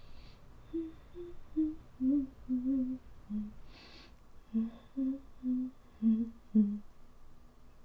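A young woman speaks quietly and wearily, close by.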